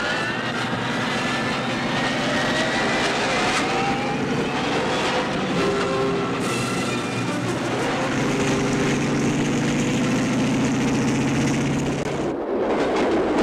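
A helicopter's rotor blades thump loudly overhead.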